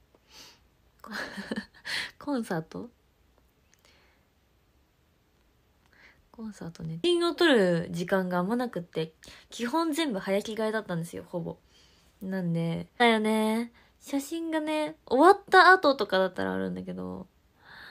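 A young woman speaks close to a microphone, casually and with animation.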